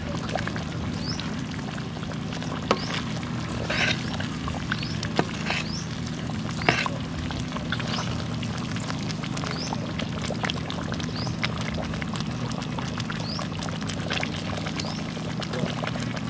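A stew bubbles and sizzles in a wok.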